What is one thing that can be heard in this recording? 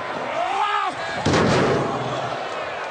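A heavy body slams against metal steps with a loud bang.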